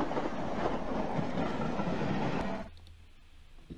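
A steam train roars and hisses past.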